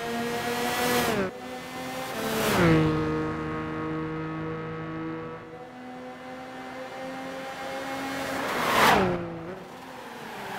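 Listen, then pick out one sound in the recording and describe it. Racing cars roar past close by, their engine pitch dropping sharply as they go.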